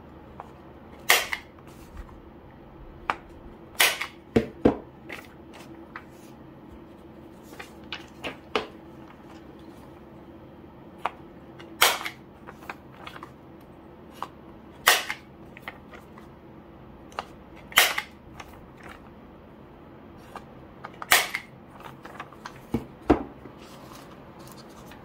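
Sheets of paper rustle and flap as they are handled.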